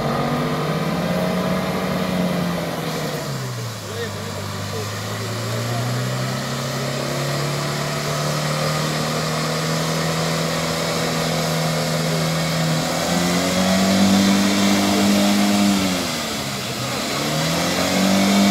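Water splashes and sloshes around a driving car.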